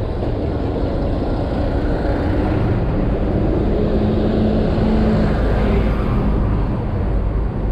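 A city bus engine rumbles as the bus passes close by.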